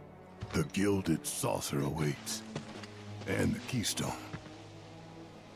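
A man speaks with a deep, gruff voice.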